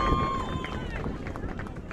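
A referee's whistle blows sharply outdoors.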